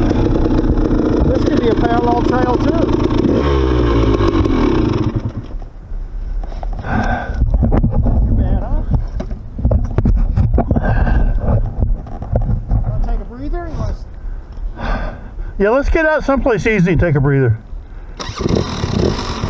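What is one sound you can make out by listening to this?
A dirt bike engine idles and revs close by.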